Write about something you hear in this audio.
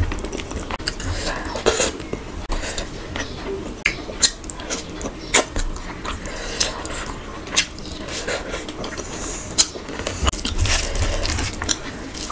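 Fingers squelch and rustle through rice and curry.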